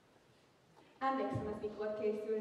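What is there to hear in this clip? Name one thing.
A young woman speaks loudly and with feeling in an echoing hall.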